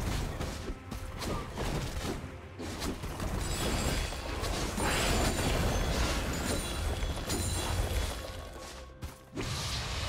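Video game spell effects crackle and burst.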